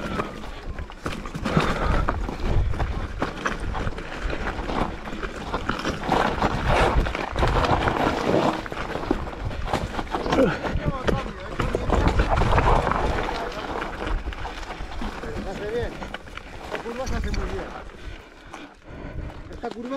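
Bicycle tyres rattle and crunch over loose rocks.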